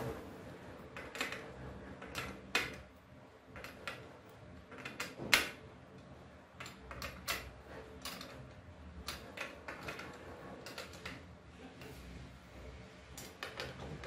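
A metal carriage slides and clicks along a rail.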